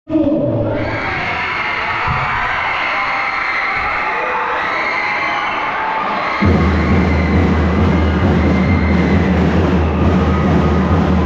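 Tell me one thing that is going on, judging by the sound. A large crowd of children and adults chatters under a big echoing roof.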